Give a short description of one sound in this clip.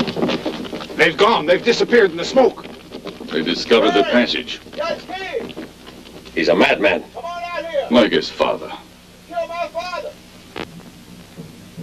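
Men speak urgently and loudly nearby.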